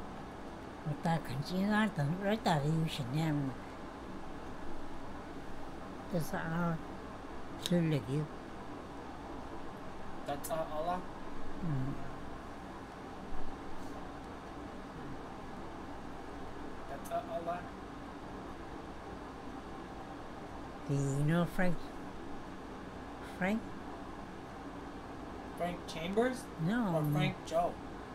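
An elderly woman speaks calmly in short bursts, close by.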